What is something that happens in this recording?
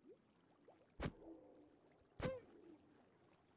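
A creature's attack zaps sharply.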